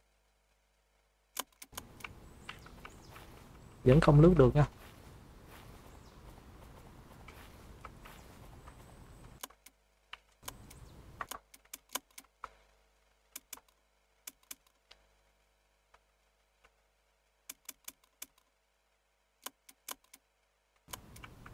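Short menu clicks tick now and then.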